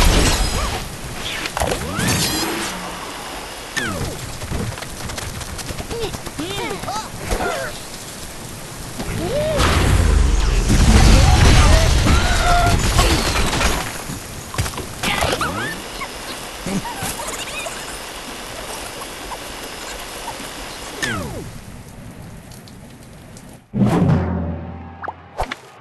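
Game sound effects whoosh, crash and chime.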